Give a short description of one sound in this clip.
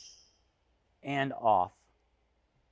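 A man speaks briefly with animation, close by.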